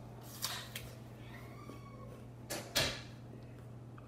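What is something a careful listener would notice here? A crisp apple crunches loudly as it is bitten and chewed.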